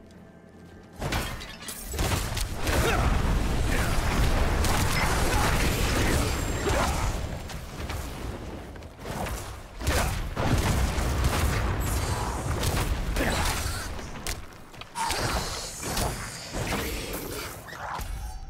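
Fiery spell blasts and explosions roar from a game.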